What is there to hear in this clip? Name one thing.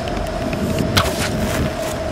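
An arrow snaps loose from a bow.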